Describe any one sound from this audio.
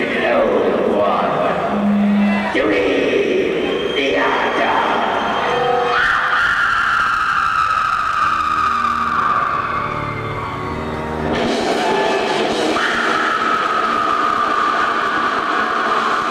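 A man sings harshly into a microphone through loudspeakers.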